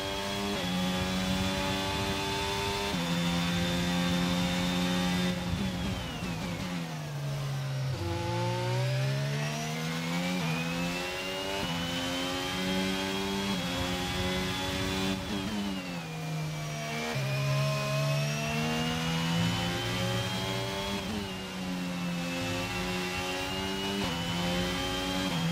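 A racing car engine screams at high revs, dropping in pitch when braking and rising again when accelerating.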